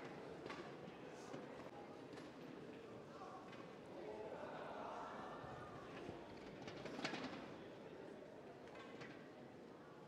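A shuttlecock is struck sharply with rackets, back and forth, in a large echoing hall.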